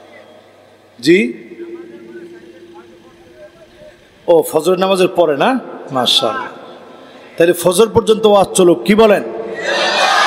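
A man preaches in a loud, sing-song voice through a microphone and loudspeakers.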